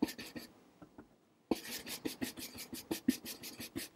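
A paintbrush softly dabs and scrapes on a palette.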